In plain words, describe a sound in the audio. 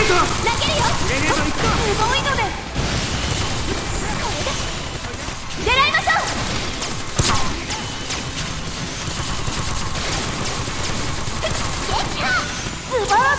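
Swords clash and strike in a fast battle.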